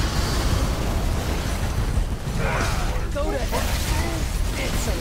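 A huge blast of fire roars and rumbles heavily.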